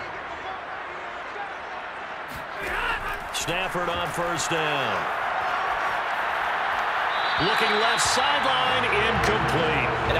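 A large stadium crowd roars steadily, swelling louder.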